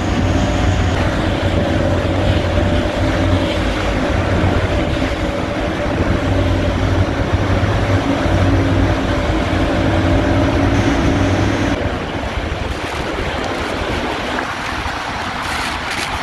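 Waterfalls roar loudly nearby.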